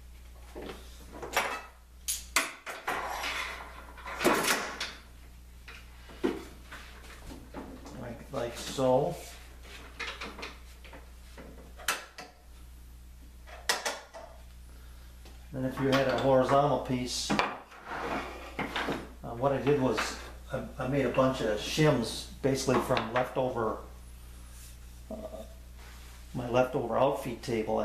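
Wooden pieces knock and clatter on a table.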